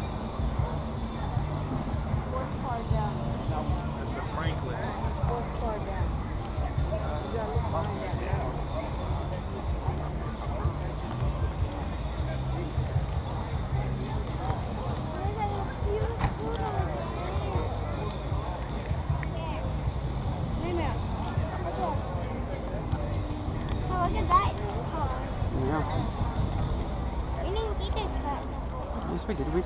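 A crowd of people chat outdoors all around.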